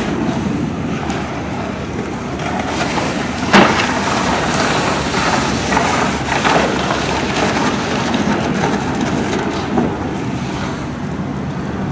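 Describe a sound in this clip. A large fire roars and crackles outdoors.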